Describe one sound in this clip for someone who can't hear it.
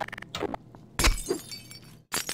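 Glass shatters and the shards tinkle down.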